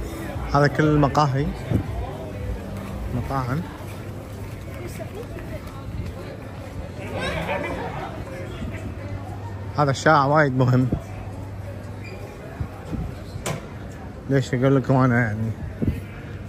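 People chat and call out nearby on a busy outdoor street.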